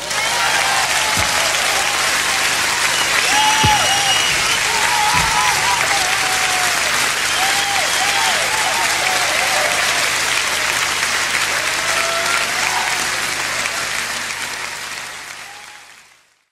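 People in a crowd whistle and cheer.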